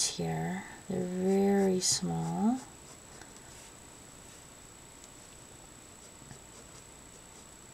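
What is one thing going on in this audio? A marker tip squeaks softly across paper.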